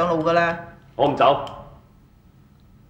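A man answers firmly.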